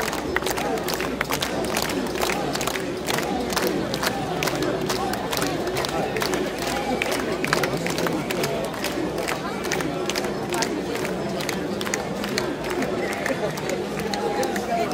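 A large crowd chants and shouts loudly outdoors.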